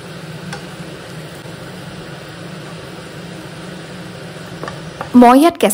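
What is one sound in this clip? A wooden spatula scrapes and stirs food in a frying pan.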